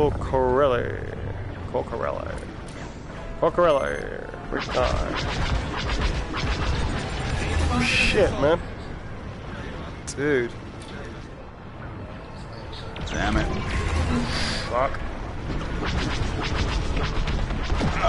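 Laser cannons fire in quick bursts.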